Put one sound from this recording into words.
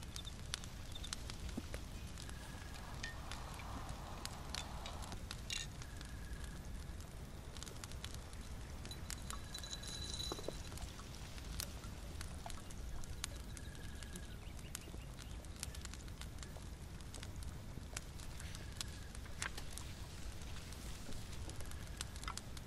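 A small fire crackles and pops softly.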